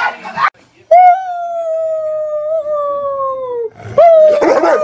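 A large dog howls.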